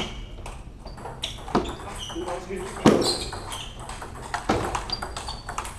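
Sneakers squeak on a hard floor.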